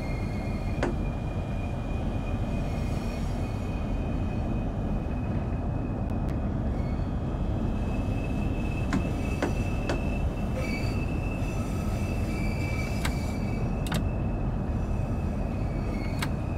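Train wheels click over rail joints.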